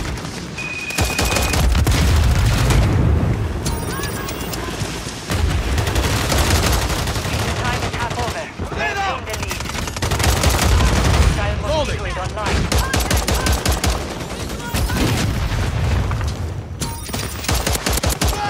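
Rapid gunshots crack and rattle in bursts.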